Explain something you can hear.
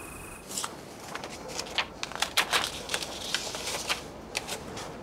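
Paper rustles and crinkles between hands.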